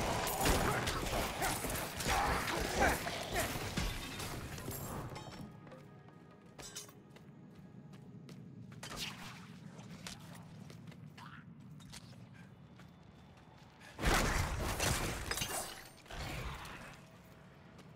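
Weapons clash and creatures screech in a fast game battle.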